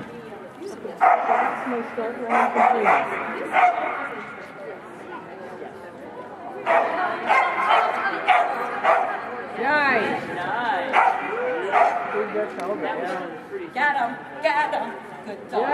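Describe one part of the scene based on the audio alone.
A woman calls out commands loudly in a large echoing hall.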